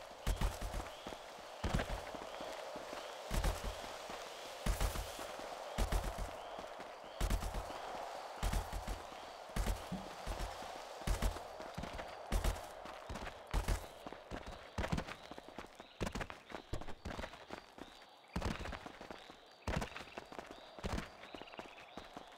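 Footsteps thud rhythmically as a figure runs uphill.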